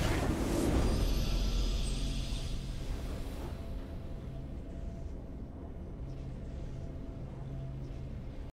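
A triumphant fanfare plays and slowly fades.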